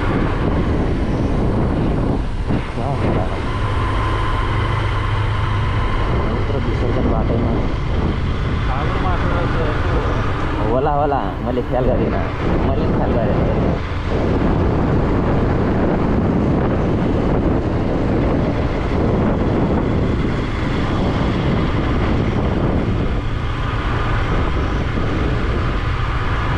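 A motorcycle engine hums steadily as the bike rides along.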